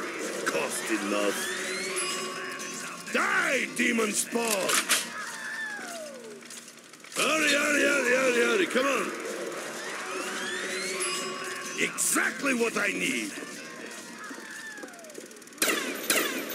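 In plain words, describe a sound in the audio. A machine plays a cheerful jingle.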